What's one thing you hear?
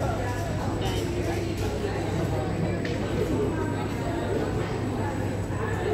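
A crowd of young women chatters, echoing in a large hall.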